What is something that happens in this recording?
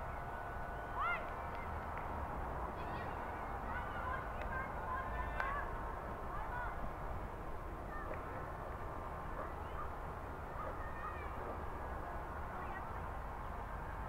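Young men call out to each other in the distance.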